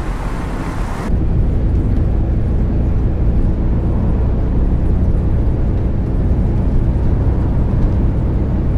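A bus engine drones steadily at low pitch while driving.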